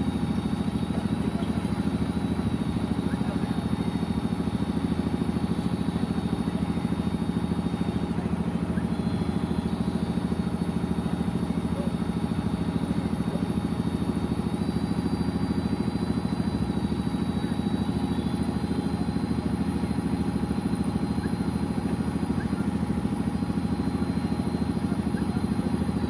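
A man chants steadily into a microphone, heard through a loudspeaker outdoors.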